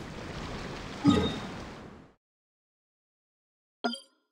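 A game menu chimes softly.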